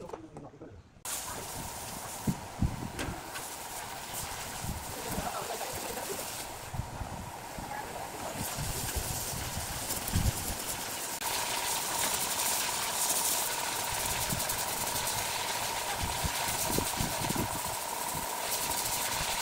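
Water sprays with a steady hiss.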